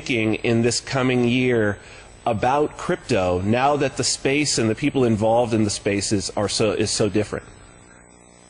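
A man speaks with animation into a close microphone over an online call.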